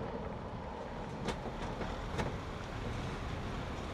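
Plastic traffic cones knock and clatter as they are handled.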